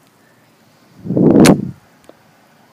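A young woman blows a puff of breath right into the microphone.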